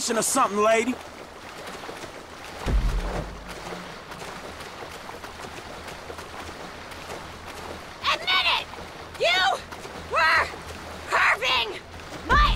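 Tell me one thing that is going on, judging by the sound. Water splashes steadily as a swimmer strokes.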